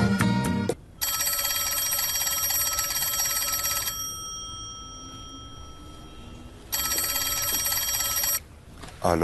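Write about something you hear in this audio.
A telephone rings loudly and steadily.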